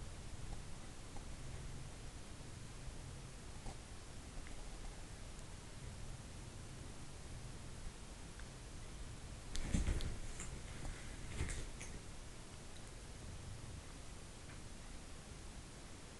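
A cat purrs softly and steadily close by.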